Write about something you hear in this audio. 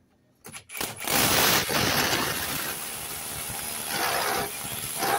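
A hammer drill bores loudly into a masonry wall.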